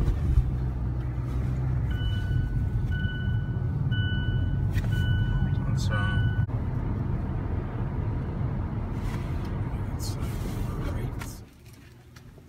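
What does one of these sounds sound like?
A car engine hums steadily with road noise from inside a moving car.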